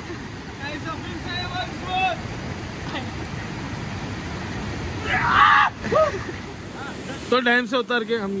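Water rushes and splashes nearby.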